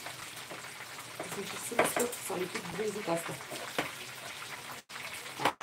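A middle-aged woman talks calmly, close to a microphone.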